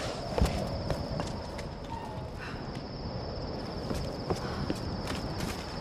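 Footsteps crunch over debris.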